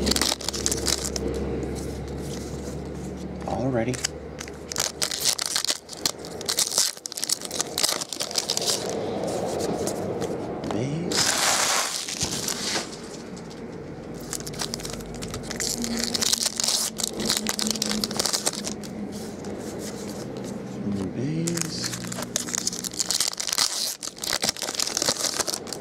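Foil wrappers crinkle and rustle in hands.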